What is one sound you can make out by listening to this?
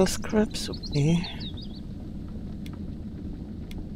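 A soft menu click sounds.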